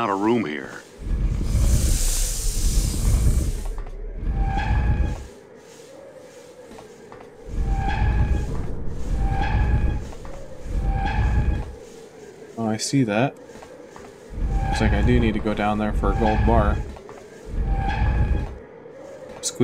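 A heavy stone block grinds and scrapes across a floor in repeated pushes.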